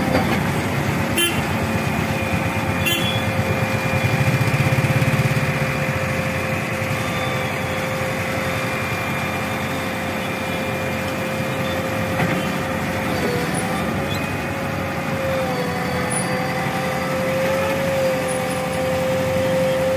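A backhoe loader's diesel engine rumbles and whines steadily close by.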